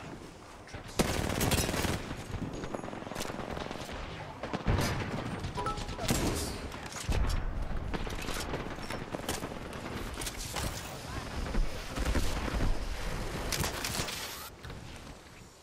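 Rapid gunfire bursts sound close by.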